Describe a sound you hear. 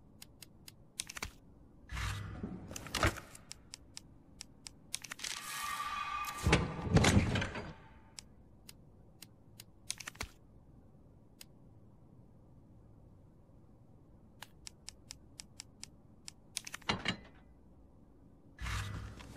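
Short electronic menu clicks tick repeatedly.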